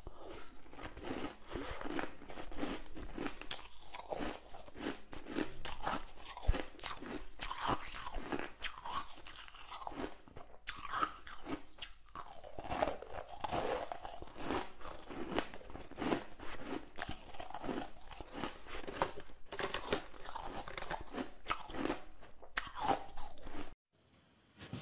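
A young woman crunches ice loudly close to a microphone.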